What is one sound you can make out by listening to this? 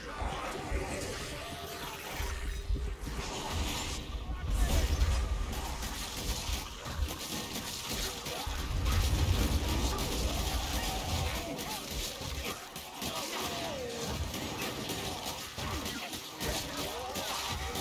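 A sword slashes and thuds into flesh again and again.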